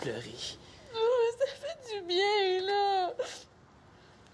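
A girl sobs and wails.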